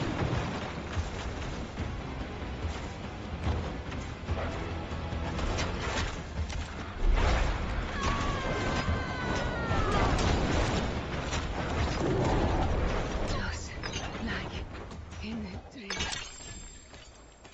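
Magic spells whoosh and crackle repeatedly.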